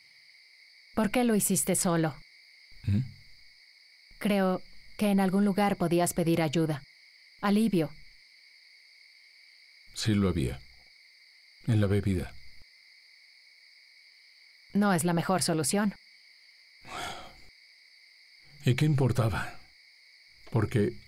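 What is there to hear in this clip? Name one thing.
A woman speaks quietly and closely.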